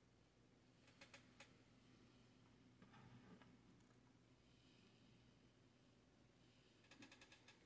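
A hard plastic model clicks and taps softly as it is turned in a hand.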